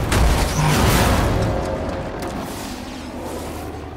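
Debris crashes and clatters against a vehicle.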